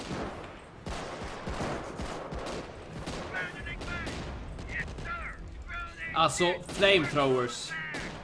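Gunfire crackles and pops in a game.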